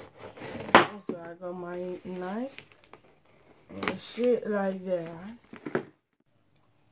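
Cardboard scrapes and taps as a box is handled.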